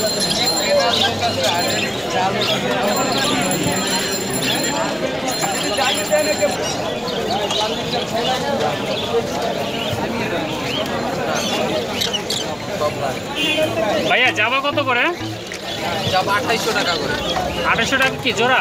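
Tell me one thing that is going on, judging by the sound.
Many small birds chirp and twitter close by.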